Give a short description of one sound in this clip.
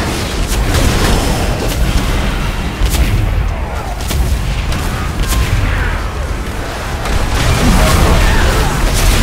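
A low rumbling din of battle goes on throughout.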